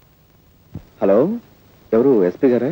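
An elderly man speaks into a telephone.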